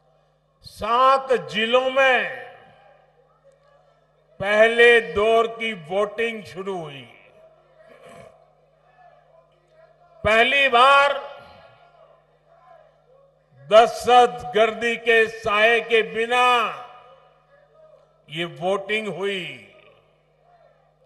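An elderly man speaks forcefully in bursts through a microphone and loudspeakers, with pauses between phrases.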